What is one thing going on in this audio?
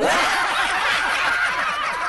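A young man laughs into a close microphone.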